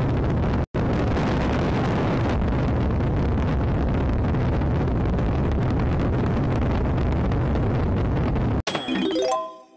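A rocket engine roars loudly and steadily.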